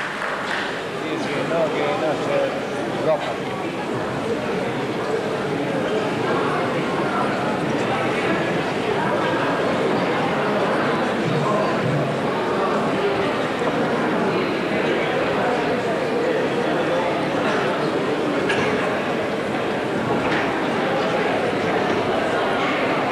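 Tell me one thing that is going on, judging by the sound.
A group of men and women sing together through a microphone.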